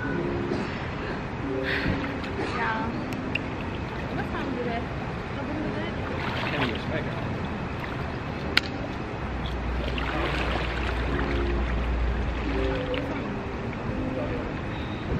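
Water splashes and laps as people move in a pool.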